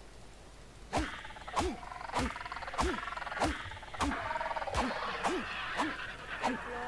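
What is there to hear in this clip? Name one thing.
A stone hatchet chops repeatedly into a carcass with wet, meaty thuds.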